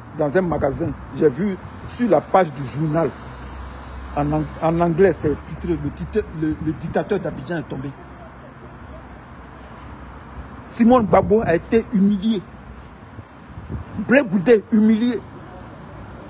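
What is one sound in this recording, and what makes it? A man talks calmly and close up, in pauses.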